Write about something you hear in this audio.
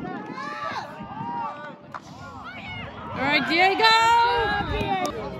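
Young women and girls cheer and shout close by outdoors.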